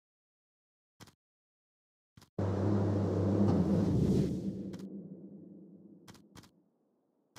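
Short electronic clicks sound as menu buttons are pressed.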